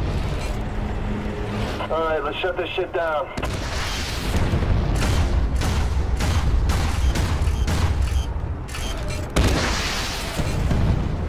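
A heavy tank engine rumbles low and steady.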